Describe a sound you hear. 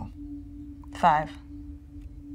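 A young woman answers softly close by.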